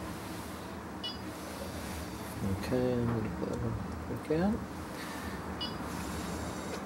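An electronic balance beeps briefly when its keys are pressed.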